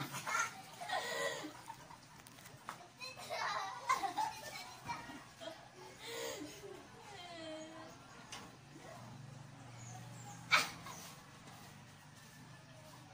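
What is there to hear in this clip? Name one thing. A young girl talks.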